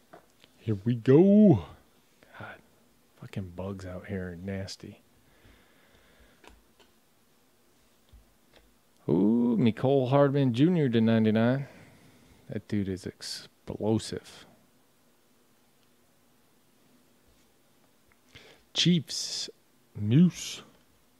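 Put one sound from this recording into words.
Trading cards rustle and flick against each other in hands.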